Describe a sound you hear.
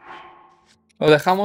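A young man speaks loudly and close to a microphone.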